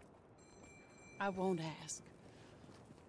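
A woman speaks quietly, close by.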